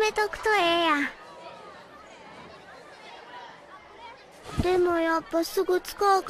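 A young girl speaks in a cheerful, animated voice, close and clear.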